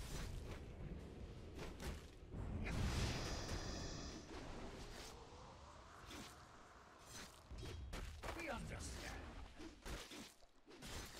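Game spells and attacks burst and clash in quick bursts.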